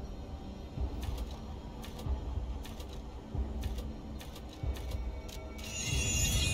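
Menu clicks tick softly and sharply.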